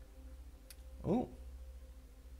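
A young man makes a short vocal sound close to a microphone.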